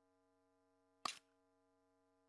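A short interface click sounds as a menu item is selected.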